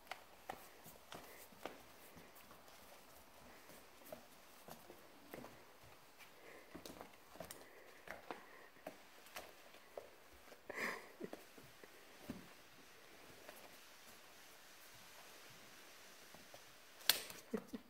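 A puppy's claws tap and scrabble on a wooden floor.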